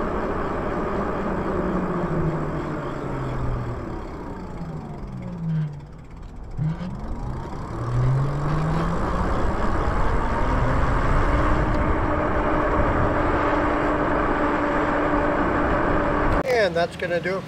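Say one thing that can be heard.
An electric motor whines, dropping in pitch as it slows and rising again as it speeds up.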